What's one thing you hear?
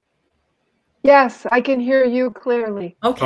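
An elderly woman speaks with animation over an online call.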